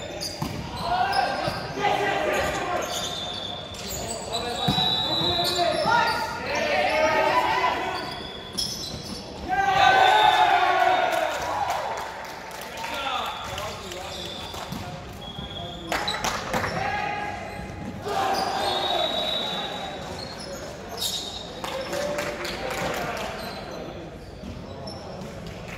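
Young women call out and shout to each other in a large echoing gym.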